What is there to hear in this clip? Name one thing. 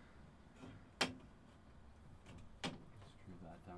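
Hard plastic knocks and clatters sharply a few times.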